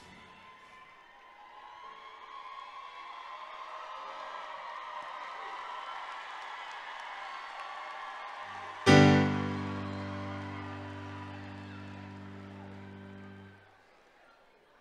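A large crowd cheers and applauds in a big echoing hall.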